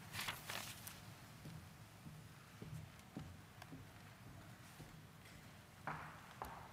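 Papers rustle softly.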